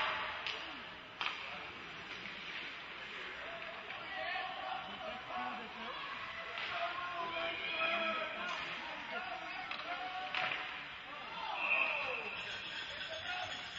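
Ice skates scrape across the ice in a large echoing rink.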